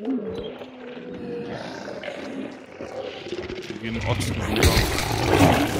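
Dogs growl and snarl close by.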